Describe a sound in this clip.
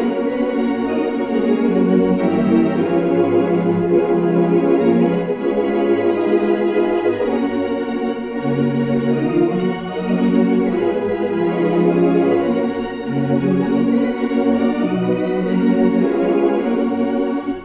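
An organ plays a slow, sustained melody in full chords.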